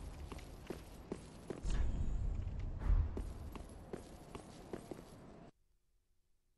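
Heavy footsteps clank on stone.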